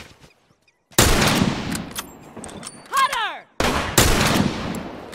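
A sniper rifle fires loud shots that echo away.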